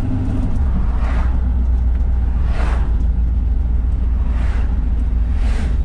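Other cars whoosh past on the road.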